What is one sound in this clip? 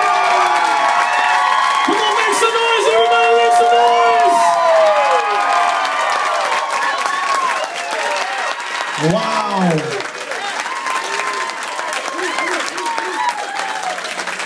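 A large crowd cheers and whoops loudly all around.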